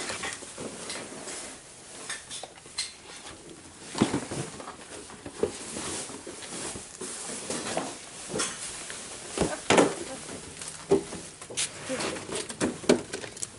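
Footsteps scuff on a hard floor.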